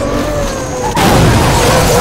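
Metal crunches and glass shatters in a car crash.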